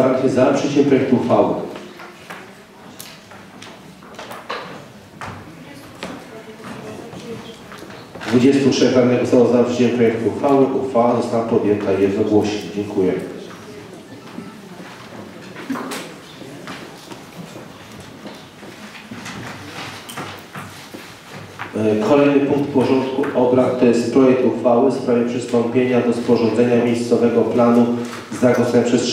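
A middle-aged man speaks calmly into a microphone in a room with some echo.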